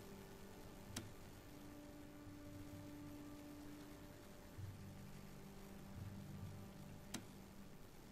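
A short, sharp click sounds twice.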